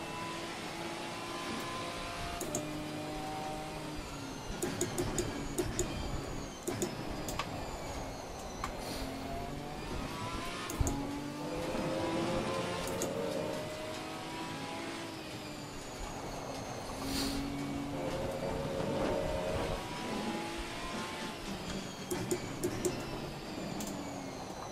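Rain patters on a car's windscreen.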